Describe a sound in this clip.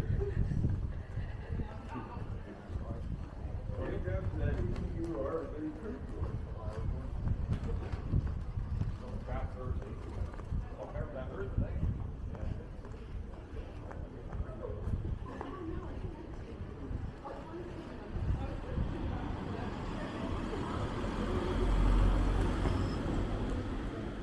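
Footsteps tap on paving stones nearby.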